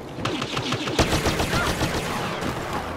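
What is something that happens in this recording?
A grenade explodes with a loud bang nearby.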